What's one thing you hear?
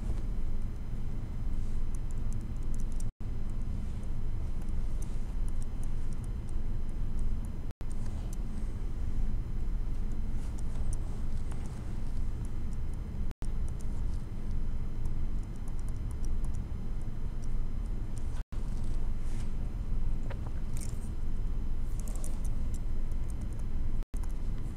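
A stylus taps and scratches lightly on a tablet.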